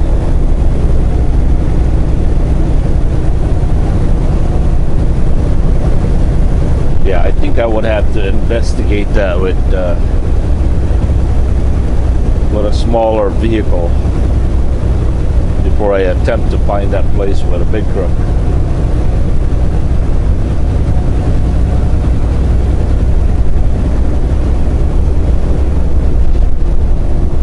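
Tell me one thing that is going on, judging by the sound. Tyres roar on the road at highway speed.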